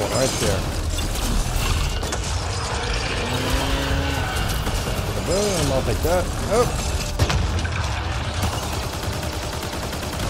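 Loud rumbling explosions boom.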